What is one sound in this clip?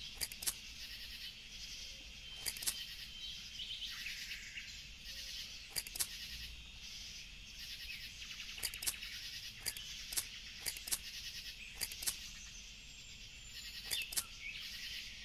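Clippers snip through bushes with short, sharp clicks, again and again.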